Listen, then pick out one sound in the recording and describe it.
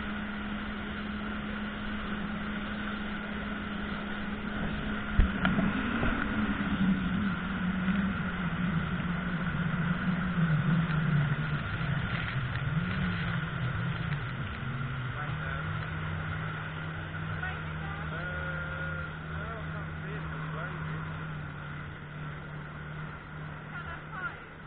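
A boat engine drones steadily, changing pitch as the boat turns.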